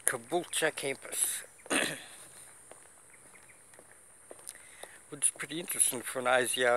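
A man talks close to the microphone in a casual, animated way.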